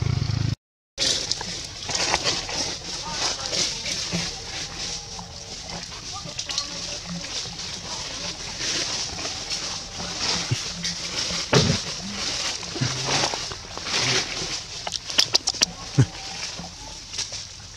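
Leaves and twigs rustle as a monkey climbs through a tree.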